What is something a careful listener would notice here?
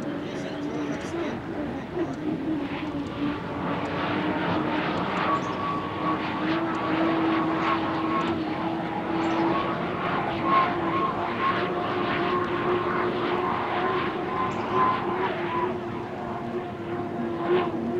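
Water spray hisses behind a speeding boat.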